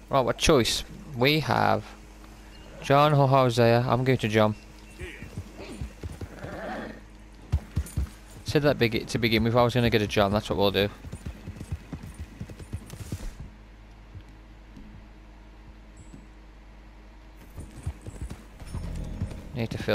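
Horse hooves thud on the ground at a canter.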